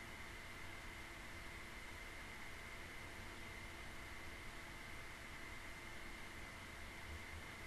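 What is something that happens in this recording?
A microphone hisses steadily with a faint high whine.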